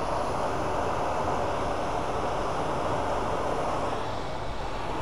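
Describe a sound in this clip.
A cloth rubs with a soft hiss against a spinning metal rod.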